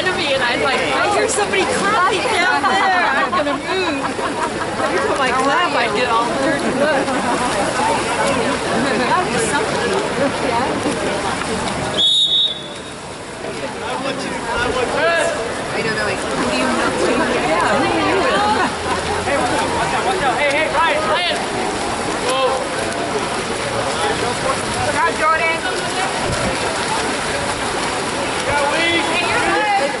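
Swimmers splash in the water.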